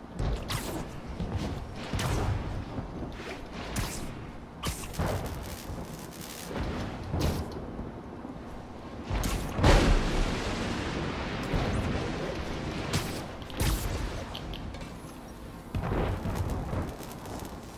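Swinging swoops and whooshes rush past again and again.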